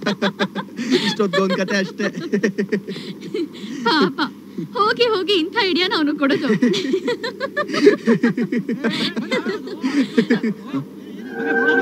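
A young woman speaks playfully.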